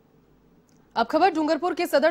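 A young woman reads out the news clearly into a microphone.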